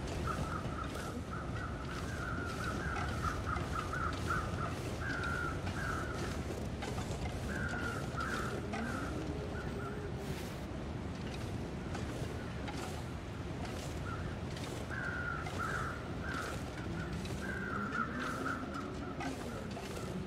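Strong wind blows steadily outdoors.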